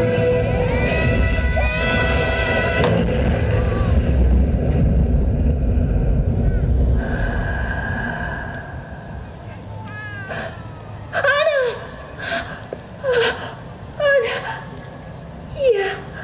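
Orchestral show music plays loudly over outdoor loudspeakers.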